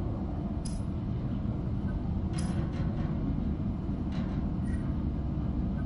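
Soft interface clicks sound as menu items are selected.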